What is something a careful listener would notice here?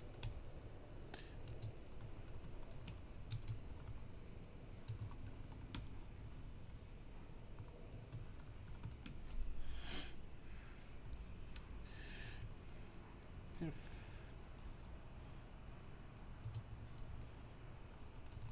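Keys click rapidly on a keyboard.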